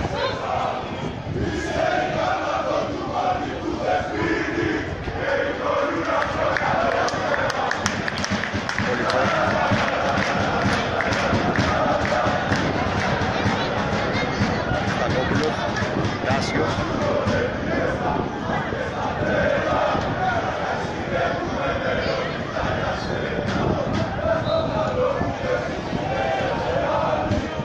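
A stadium crowd chants and cheers steadily from the stands, outdoors.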